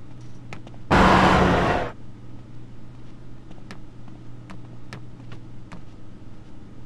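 Footsteps tap on a metal walkway.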